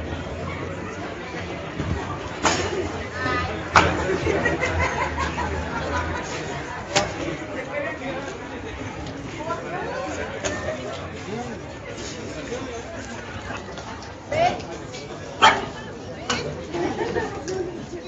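A crowd chatters outdoors in the background.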